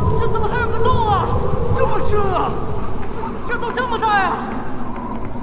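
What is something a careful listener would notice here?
A young man exclaims in alarm.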